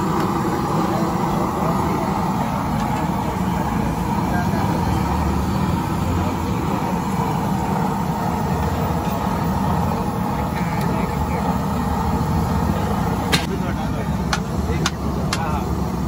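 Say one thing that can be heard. A metal ladle stirs thick gravy in a large steel pan, scraping and sloshing.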